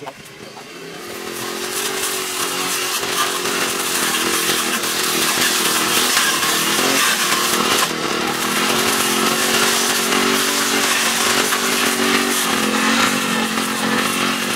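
A string trimmer engine whines steadily close by.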